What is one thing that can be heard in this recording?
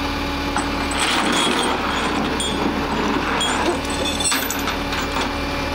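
A metal chain clinks and rattles as it is dragged and hooked.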